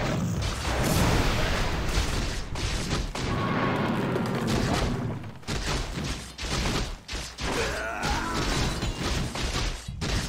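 Weapons clash and thud in a busy fight.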